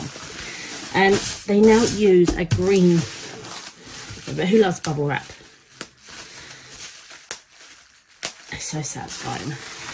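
Bubble wrap crinkles and rustles.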